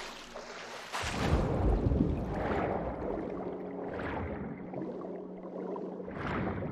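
Water swirls and bubbles as a swimmer moves underwater.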